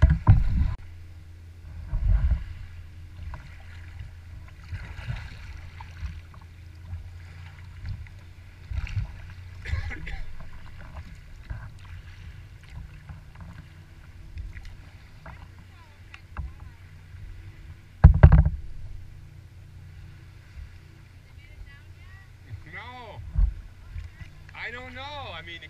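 Small waves lap and splash against a kayak's hull.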